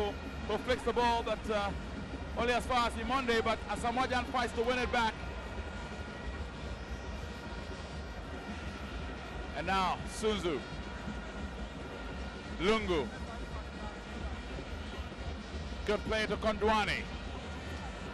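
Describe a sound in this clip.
A large crowd murmurs and cheers steadily.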